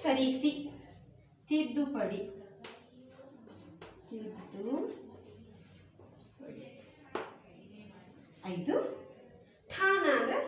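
A woman speaks clearly and slowly, close by, as if teaching.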